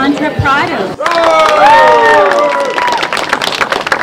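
Young people in an audience cheer and whoop.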